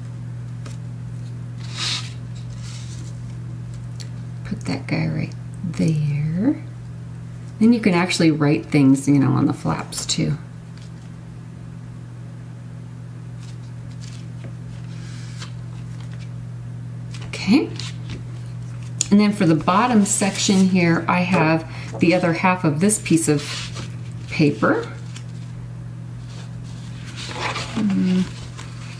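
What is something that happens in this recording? Paper rustles and slides as it is folded and pressed flat.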